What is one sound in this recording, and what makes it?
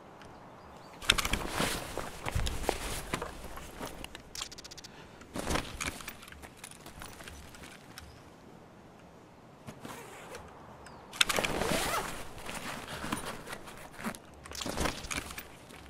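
Cloth and gear rustle as hands search a body and a bag.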